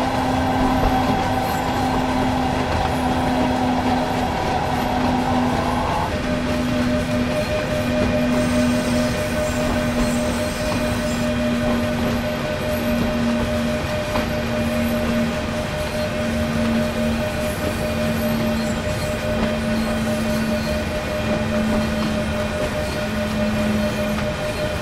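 Train wheels rumble and clack rhythmically over rail joints.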